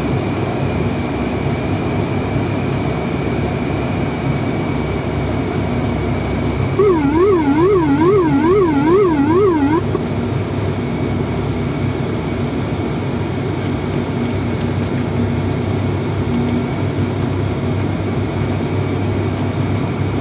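Aircraft engines drone steadily and loudly.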